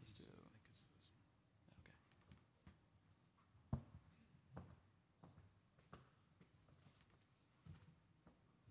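Items knock and rustle on a wooden lectern.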